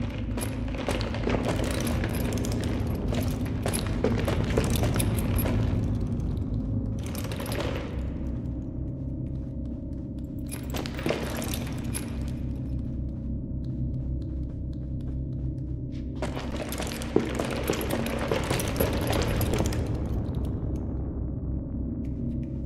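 Heavy footsteps thud and shuffle on a hard floor.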